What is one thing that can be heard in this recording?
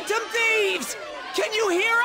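A young man shouts with excitement.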